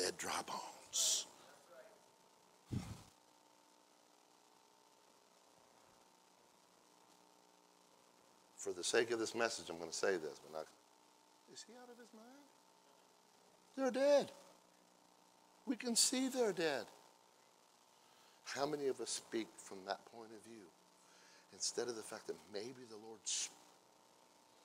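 A middle-aged man speaks with animation through a microphone, pausing between phrases, in a large room.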